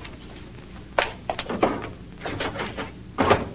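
Objects clatter and knock as a girl handles things on a table.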